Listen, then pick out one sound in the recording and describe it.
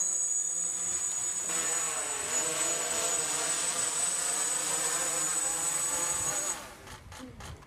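A small drone's rotors buzz and whine close by.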